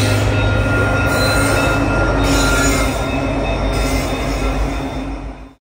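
Freight cars clatter along the rails.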